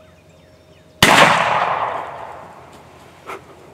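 A shotgun fires once with a loud bang that echoes away.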